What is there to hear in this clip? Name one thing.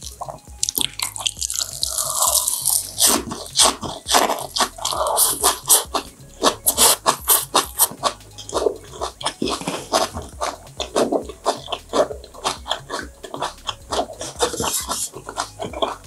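A young woman chews crunchy leafy greens loudly and close up.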